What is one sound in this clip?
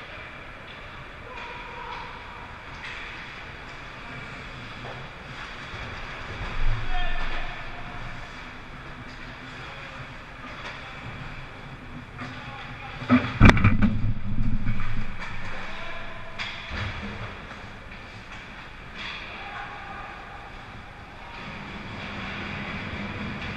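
Skate blades scrape and hiss across the ice of a large echoing rink.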